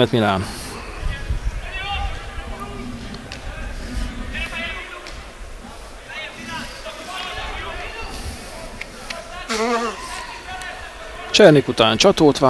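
Young men shout to one another from a distance outdoors.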